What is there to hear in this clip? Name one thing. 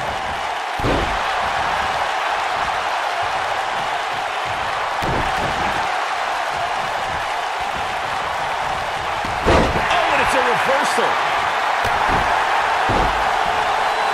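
Heavy bodies slam onto a wrestling mat with deep thuds.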